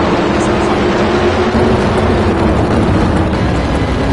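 Tyres screech during a burnout.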